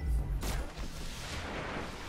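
A crackling energy blast bursts loudly.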